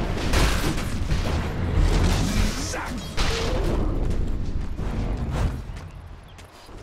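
Magic blasts and clashing weapons crackle loudly in a fierce fight.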